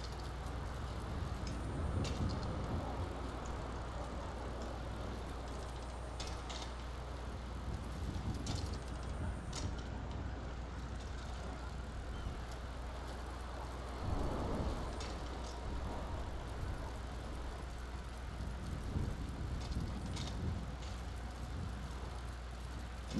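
Bicycle tyres crunch over snowy gravel.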